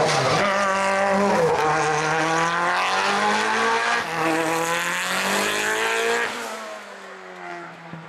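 A race car engine roars loudly, revving hard through the gears and fading into the distance.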